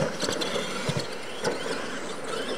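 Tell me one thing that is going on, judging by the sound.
A radio-controlled monster truck lands a jump on dirt.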